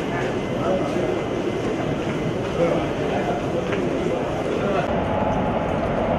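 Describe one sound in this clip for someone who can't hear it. A crowd of men murmurs and chatters nearby.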